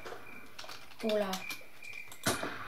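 A young boy says a few words close to a microphone.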